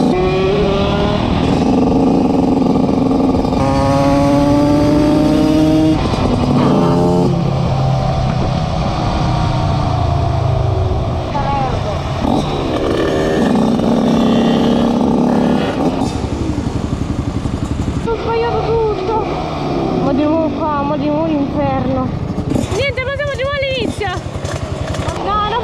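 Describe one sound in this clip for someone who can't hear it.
A motorcycle engine roars and revs up and down.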